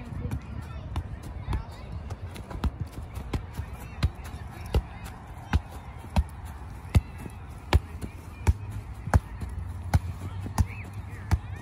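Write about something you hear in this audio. A ball is kicked with dull thuds, again and again.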